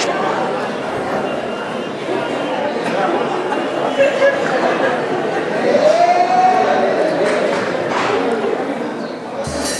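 Many people chatter at once in the background.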